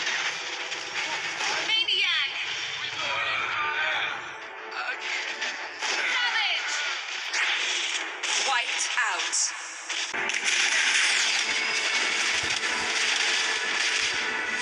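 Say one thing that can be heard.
Game spell effects whoosh and clash in a busy battle.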